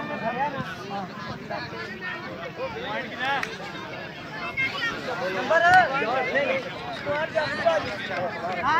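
A crowd of men shouts and talks outdoors.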